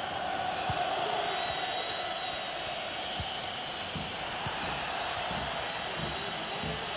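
A large crowd cheers and roars steadily in a stadium.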